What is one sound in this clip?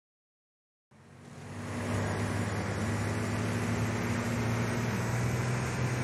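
A car engine drones steadily at speed.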